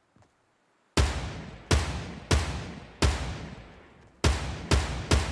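Loud rifle shots fire one after another, each trailing off in a long echoing boom.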